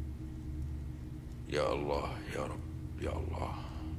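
Prayer beads click softly between fingers.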